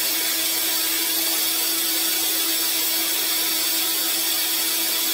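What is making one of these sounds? A drain-cleaning machine whirs steadily as its cable spins in a drain pipe.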